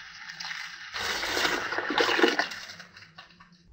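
Liquid pours and splashes into a jar.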